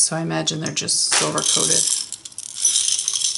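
Beads rattle inside a glass jar.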